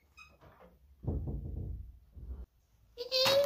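A door creaks and shuts.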